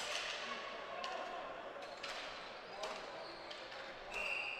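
Lacrosse sticks clack against each other and the ball.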